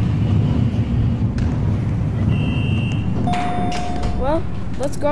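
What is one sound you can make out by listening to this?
A low elevator hum drones steadily.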